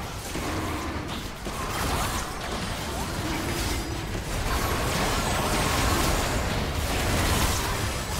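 Spell effects whoosh, zap and crackle in a fast game fight.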